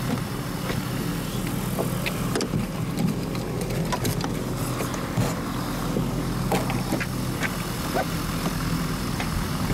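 A small aircraft engine idles with a steady low drone.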